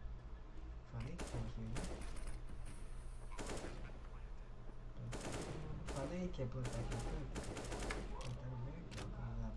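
Rifle shots crack in short bursts.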